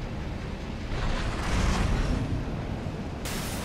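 A fiery explosion bursts with a loud roar.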